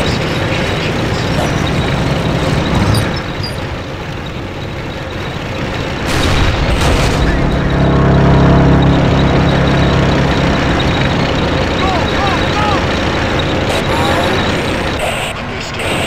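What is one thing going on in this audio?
Heavy vehicle engines rumble steadily, growing louder for a while.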